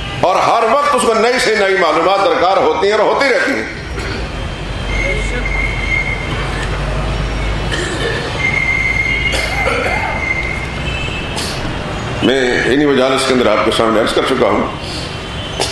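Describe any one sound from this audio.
An elderly man speaks with emphasis into a microphone, heard through a loudspeaker in an echoing hall.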